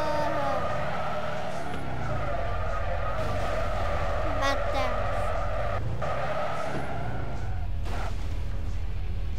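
A game car engine hums steadily and revs.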